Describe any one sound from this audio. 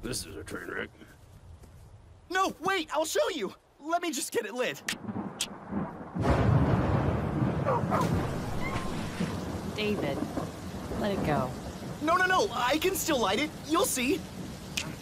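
A young man speaks with animation and excitement.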